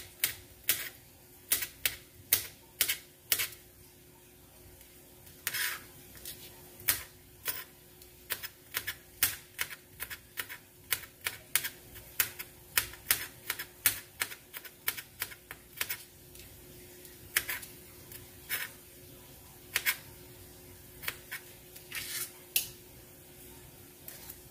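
A knife chops on a cutting board with quick, sharp knocks.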